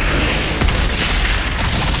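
A creature explodes in a wet burst.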